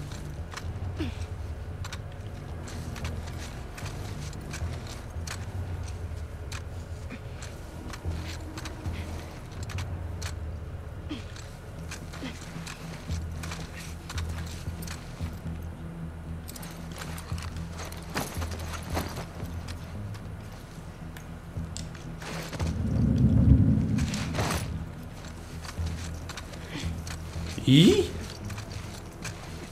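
Tall grass rustles and swishes as someone crawls through it.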